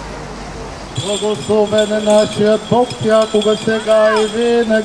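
An elderly man chants a prayer in a loud, steady voice nearby.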